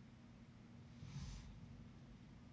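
A trading card rustles softly against gloved fingers.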